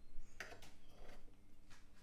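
A knife cuts into a baked dish.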